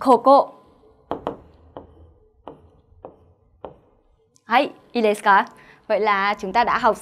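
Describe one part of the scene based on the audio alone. A young woman speaks with animation through a close microphone.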